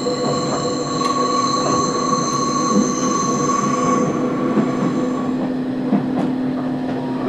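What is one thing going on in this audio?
Train wheels clack over rail joints now and then.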